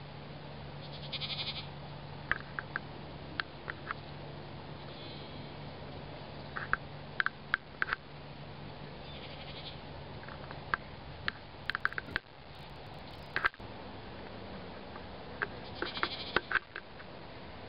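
Goats bleat now and then in the distance.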